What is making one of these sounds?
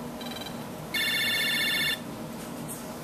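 A video game plays a loud, shrill electronic ringing for about a second.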